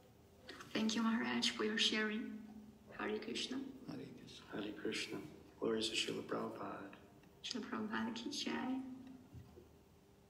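An elderly man speaks close to a microphone, in a calm, measured voice.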